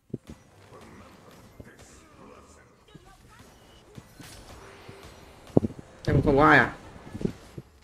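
Magic blasts and hits sound in quick bursts.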